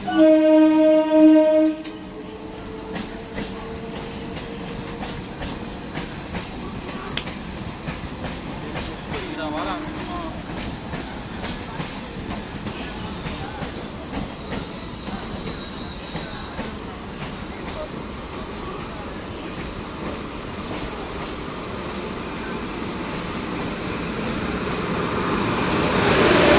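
A train rumbles as it approaches, growing louder.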